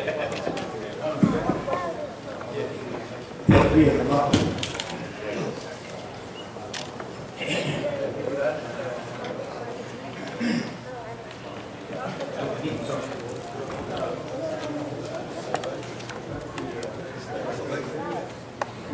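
Several men talk quietly in a large room.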